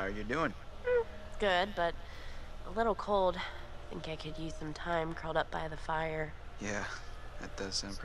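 A young woman speaks softly and hesitantly.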